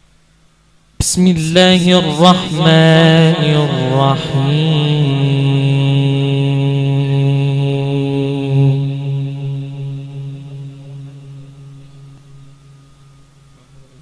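A young man chants a long melodic phrase loudly through a microphone, holding the final note as it slowly fades.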